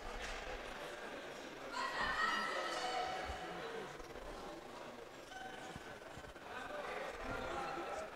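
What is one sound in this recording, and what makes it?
Inline skates roll and scrape across a hard floor.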